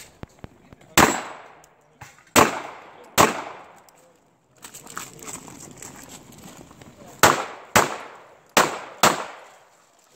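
Pistol shots crack loudly outdoors and echo.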